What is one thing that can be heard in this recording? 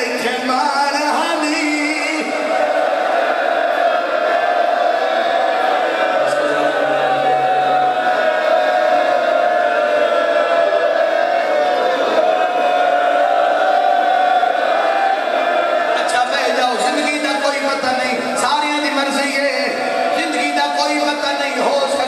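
A man preaches passionately through a microphone and loudspeakers, his voice ringing in a large room.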